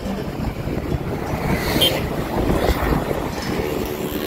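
A motorbike engine hums as it passes nearby.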